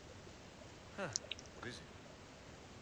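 A man asks a short question.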